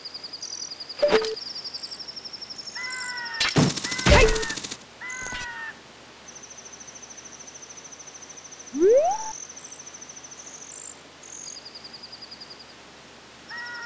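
Short electronic game chimes and blips sound throughout.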